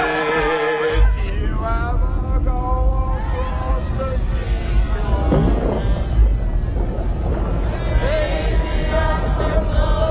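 Waves wash and rumble against a shore.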